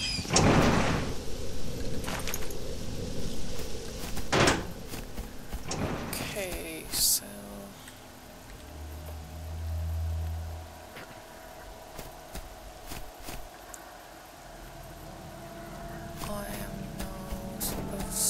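Footsteps crunch on dry ground outdoors.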